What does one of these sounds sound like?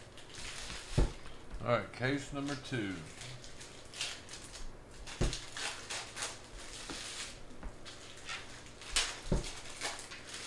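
Stacks of cards thump down onto a table.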